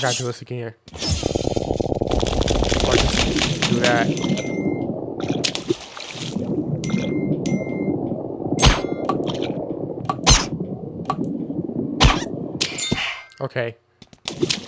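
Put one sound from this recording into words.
Stone blocks crumble and crash apart.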